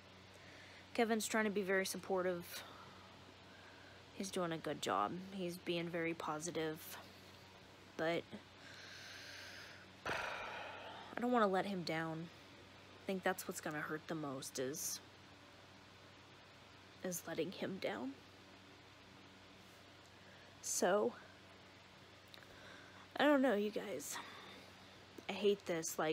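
A woman speaks softly and haltingly, close by, with long pauses.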